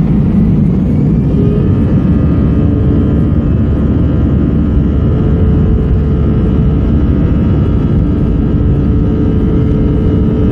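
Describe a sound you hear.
The turbofan jet engines of an Airbus A320 spool up to takeoff thrust, heard from inside the cabin.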